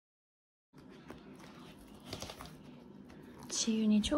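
Album pages rustle as they are turned.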